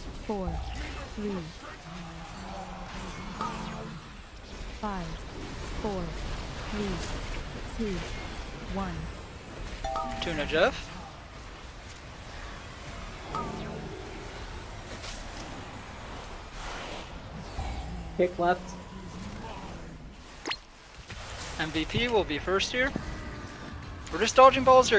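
Spell effects whoosh and blast in a game battle.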